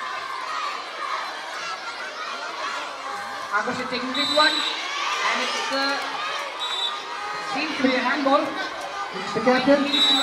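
A crowd of children chatters and shouts outdoors.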